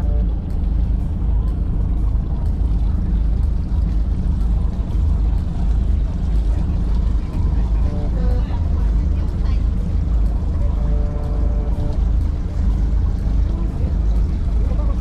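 Wind blows hard across the water.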